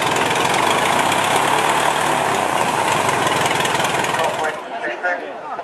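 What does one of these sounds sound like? A biplane's piston engine runs close by, its propeller turning.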